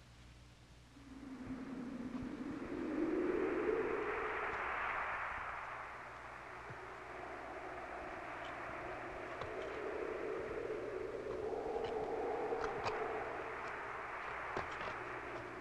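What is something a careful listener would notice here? A blizzard wind howls outdoors.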